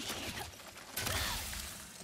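A bright magical burst crackles and sparkles.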